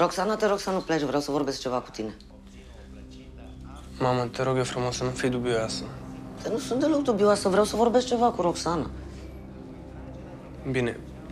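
A young man speaks casually up close.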